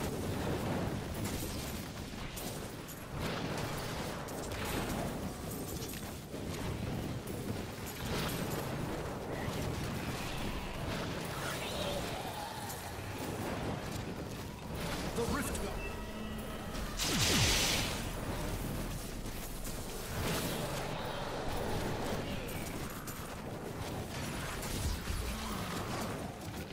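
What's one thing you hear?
Video game spell blasts and explosions crackle and boom.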